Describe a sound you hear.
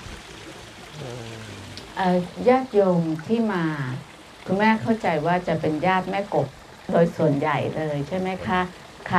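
A man speaks calmly into a microphone, heard through a loudspeaker outdoors.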